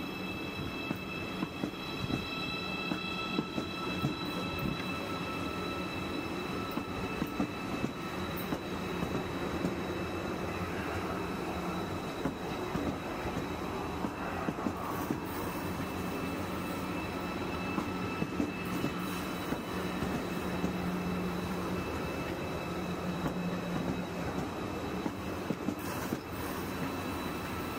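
Electric motors of a train whine with steady high tones.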